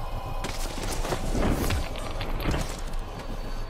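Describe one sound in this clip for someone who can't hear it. A blade slashes and stabs with sharp, wet thuds.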